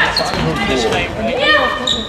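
A handball bounces on a hall floor.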